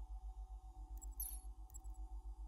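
A soft electronic click sounds as a menu selection changes.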